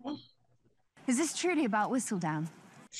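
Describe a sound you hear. A woman speaks expressively at close range.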